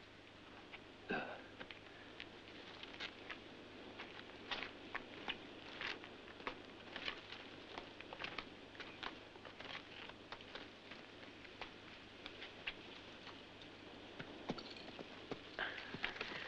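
Footsteps crunch on stony ground.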